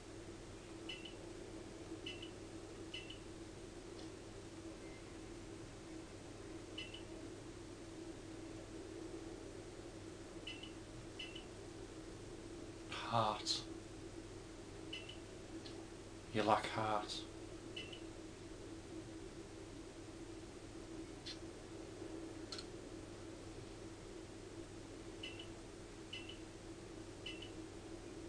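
Short electronic blips chirp now and then as dialogue text advances.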